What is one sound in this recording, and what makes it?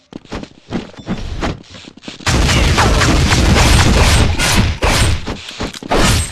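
Frost blasts crackle and shatter nearby.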